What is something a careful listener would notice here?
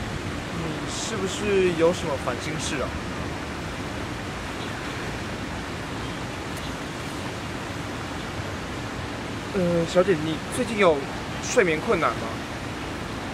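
A young man asks questions calmly nearby.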